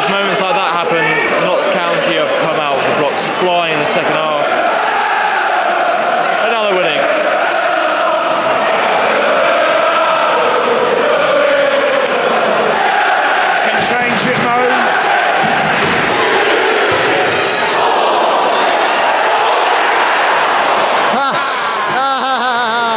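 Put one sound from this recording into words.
A football crowd murmurs and chants in a stadium.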